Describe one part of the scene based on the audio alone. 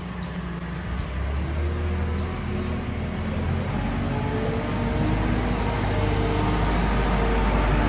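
A loader's diesel engine rumbles close by.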